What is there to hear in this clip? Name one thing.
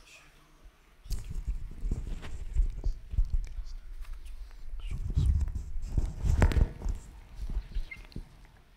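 A microphone rustles and thumps as it is handled.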